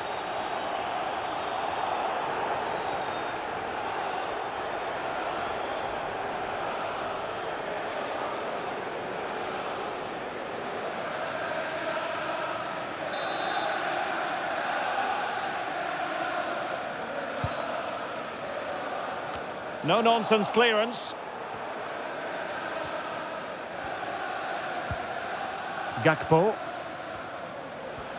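A stadium crowd roars and chants steadily.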